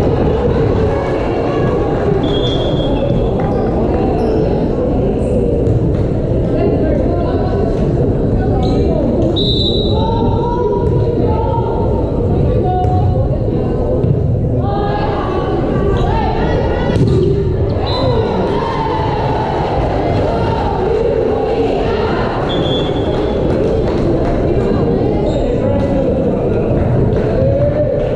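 A crowd chatters and cheers throughout a large echoing gym.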